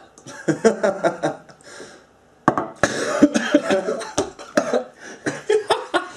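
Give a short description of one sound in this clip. Two young men laugh loudly nearby.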